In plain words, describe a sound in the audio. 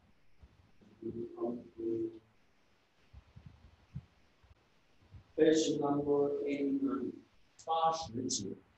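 A young man reads aloud from a book, close by.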